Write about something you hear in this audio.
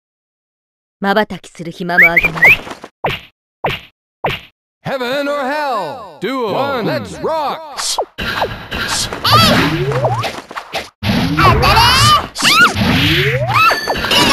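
Video game fighting effects whoosh and clash.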